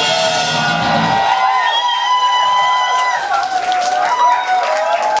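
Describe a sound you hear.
An electric guitar plays loud sustained notes.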